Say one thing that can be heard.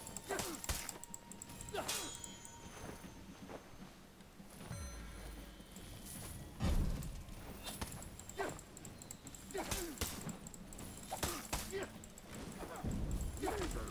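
Swords clash and clang in quick blows.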